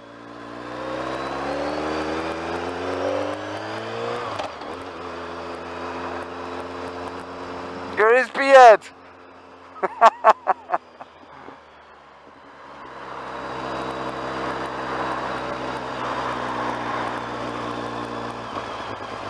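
A motorcycle engine revs and hums up close, rising and falling with the throttle.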